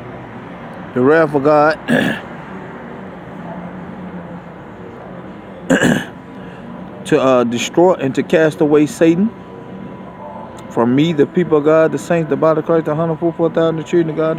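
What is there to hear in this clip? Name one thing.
A man speaks close to a phone microphone, calmly and in short bursts.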